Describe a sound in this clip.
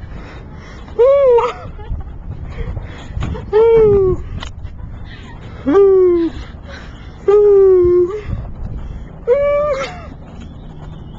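A young man calls out in long, loud, sliding hoots.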